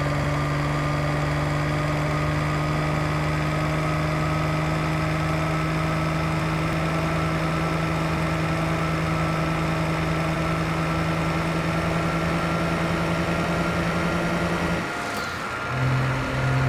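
A truck engine hums steadily while cruising, then dips briefly as the gear changes.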